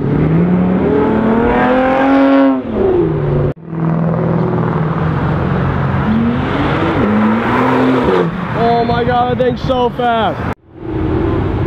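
A sports car engine revs loudly as it accelerates past.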